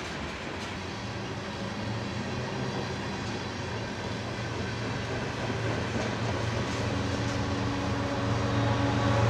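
A second locomotive engine rumbles as it approaches.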